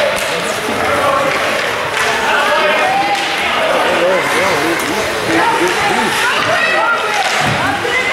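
Ice skates scrape and glide across an ice rink.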